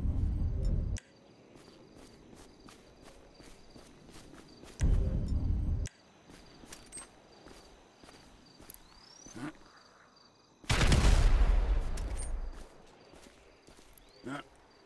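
Footsteps crunch softly through dry grass.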